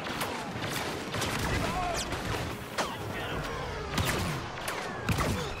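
Laser blasters fire in quick, zapping bursts.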